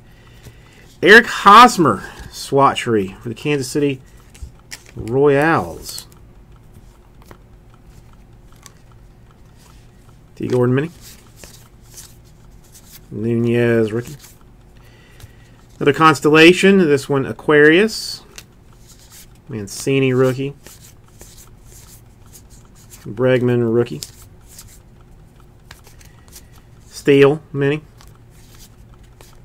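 Stiff cards slide and rustle against each other between fingers.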